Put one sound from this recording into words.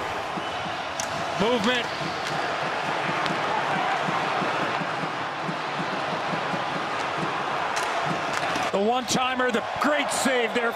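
Hockey sticks clack against a puck.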